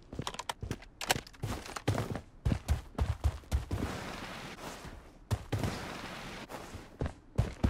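Footsteps thud quickly over the ground.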